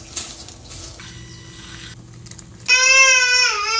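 A handheld milk frother whirs with a steady buzz.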